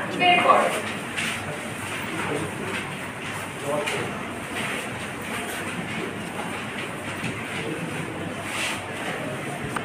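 A woman speaks calmly in a room.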